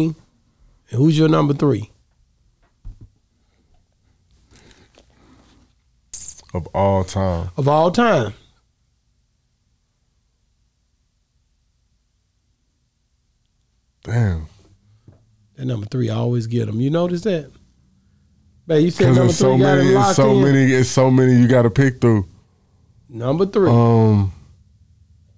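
A second man speaks into a close microphone.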